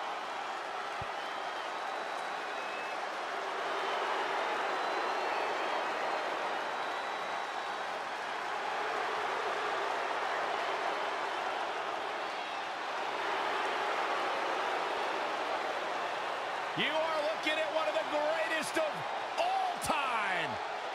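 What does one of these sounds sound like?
A body slams hard onto a wrestling ring mat.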